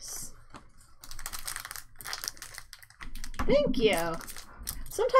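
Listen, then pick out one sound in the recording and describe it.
A foil wrapper crinkles as it is torn open.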